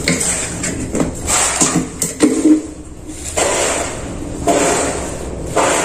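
A plastic pipe scrapes and knocks on rubble.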